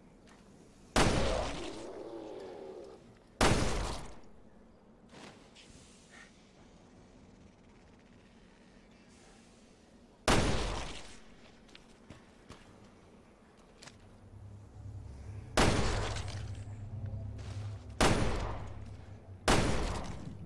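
Gunshots ring out loudly, echoing in an enclosed space.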